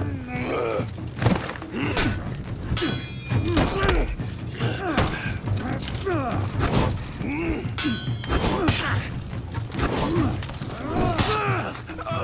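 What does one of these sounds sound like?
Blades whoosh through the air in quick swings.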